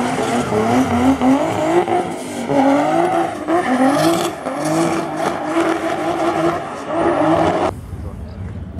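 A car engine revs hard and roars up close.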